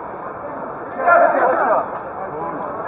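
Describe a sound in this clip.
A man exclaims loudly close by.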